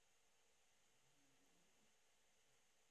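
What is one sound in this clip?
A man speaks quietly, close to a microphone.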